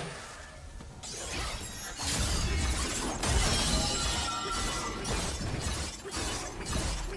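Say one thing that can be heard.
Game spell effects zap and crackle in quick bursts.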